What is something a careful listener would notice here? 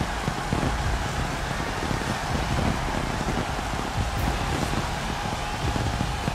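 Fireworks fizz and crackle loudly nearby.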